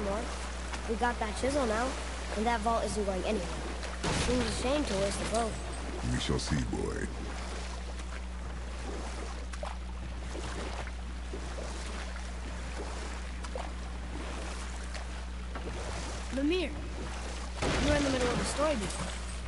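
Oars splash and paddle through water.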